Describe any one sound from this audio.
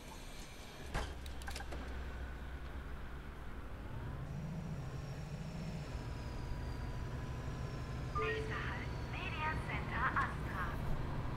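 A bus engine rumbles low and steady as the bus drives off.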